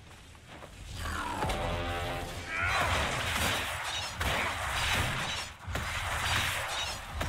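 Magic blasts crackle and whoosh during a fight.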